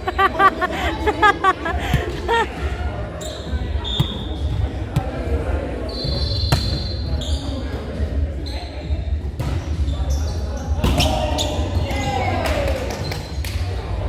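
Young men and women call out to one another across the court.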